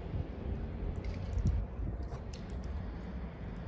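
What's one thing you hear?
A spray bottle squirts in short bursts.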